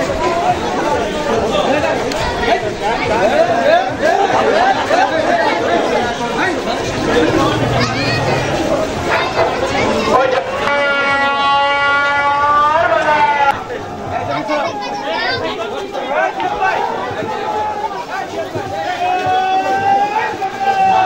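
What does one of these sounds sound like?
A large crowd of men talks and shouts outdoors, close by.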